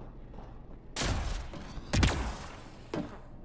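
A heavy body lands with a loud thud and a rush of noise.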